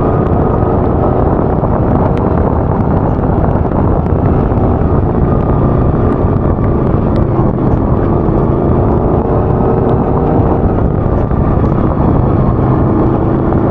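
Tyres crunch and rattle over a bumpy dirt track.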